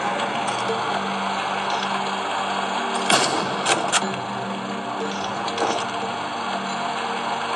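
Tense video game music plays steadily.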